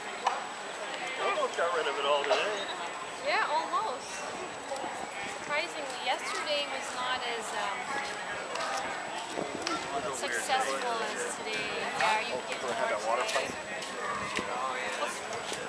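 A crowd of men and women chatters outdoors, close by.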